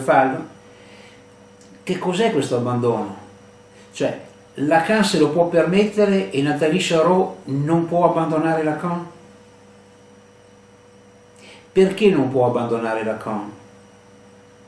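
A middle-aged man reads aloud calmly and close to a microphone, pausing between phrases.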